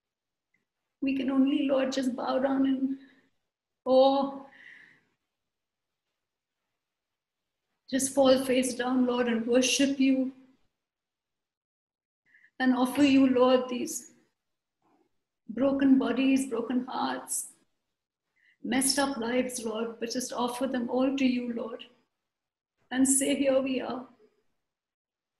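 A middle-aged woman sings softly and with feeling, close to a microphone, in phrases with pauses between them.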